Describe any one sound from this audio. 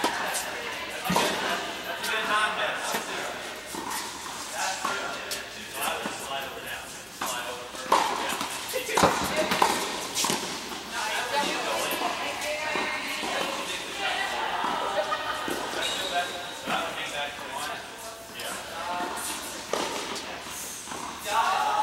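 Women call out to each other across the hall.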